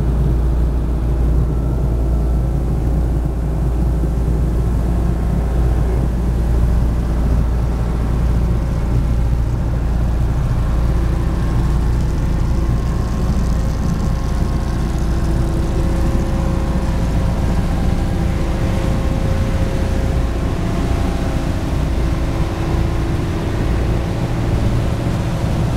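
Water rushes and splashes against the hull of a moving boat.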